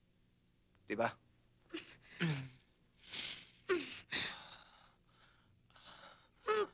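A man sighs and breathes heavily.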